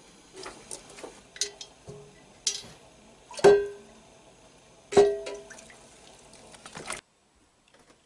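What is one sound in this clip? A metal pan clangs and rings against a sink.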